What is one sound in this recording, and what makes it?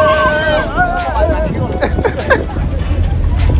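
A young man cheers and laughs.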